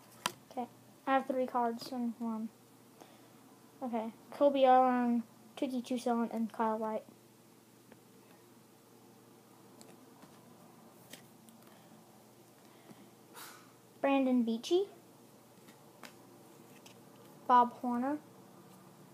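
A young boy speaks close to the microphone in short bursts.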